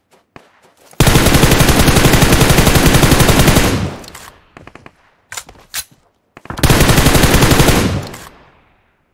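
A rifle fires long rapid bursts at close range.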